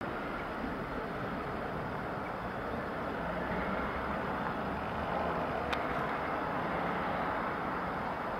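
A diesel train rumbles steadily as it rolls slowly closer.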